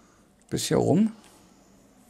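A button on a game controller clicks under a finger.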